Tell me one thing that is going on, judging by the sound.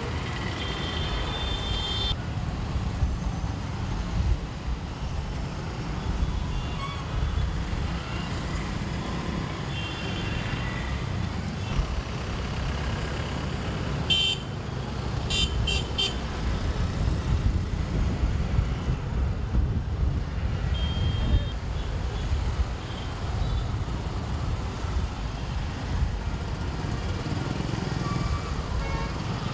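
Heavy traffic rumbles and idles steadily outdoors.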